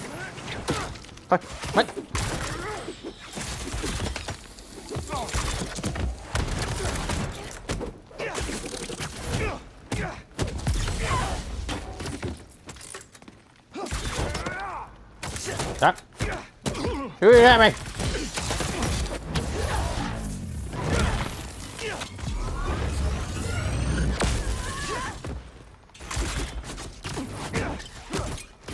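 Blows and impacts thud and crack in a fight.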